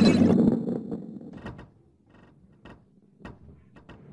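Balls knock against each other with hollow clunks.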